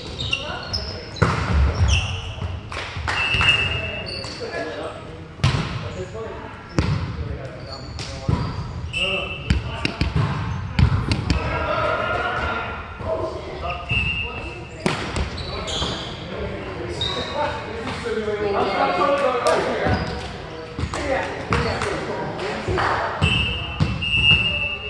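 Shoes squeak sharply on a wooden gym floor.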